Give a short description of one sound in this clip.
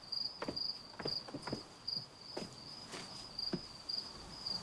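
Footsteps tap on stone stairs.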